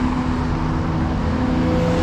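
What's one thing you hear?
Cars drive past on a road.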